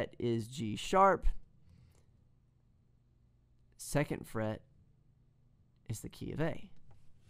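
A man speaks calmly and closely into a microphone, in short phrases.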